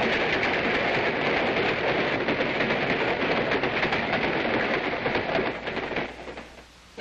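A train rumbles past loudly at speed.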